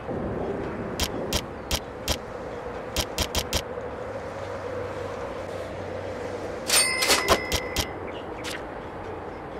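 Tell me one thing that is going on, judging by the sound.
Short menu clicks sound as the selection moves.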